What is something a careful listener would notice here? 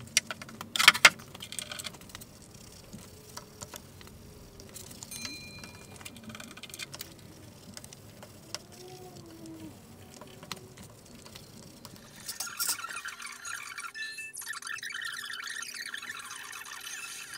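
A brush scrapes and dabs against wooden boards.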